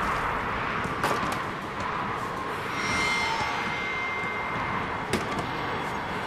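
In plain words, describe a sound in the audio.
Hands knock and scrape on wooden beams during a climb.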